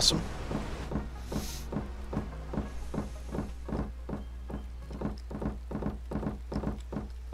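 Footsteps thud on wooden boards at a steady walking pace.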